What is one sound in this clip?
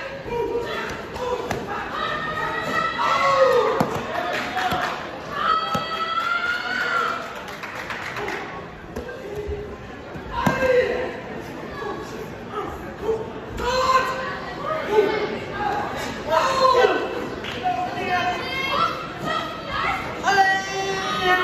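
A boy's bare feet thump on a mat.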